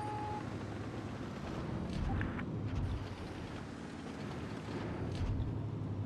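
A tank engine rumbles low and heavy.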